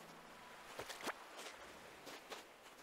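A fishing bobber plops into water.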